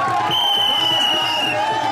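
A man nearby shouts loudly.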